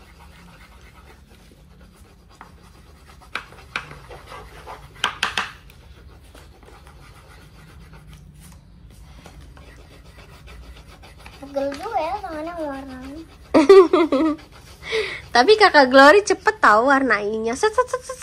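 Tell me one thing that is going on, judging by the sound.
Crayons scratch on paper.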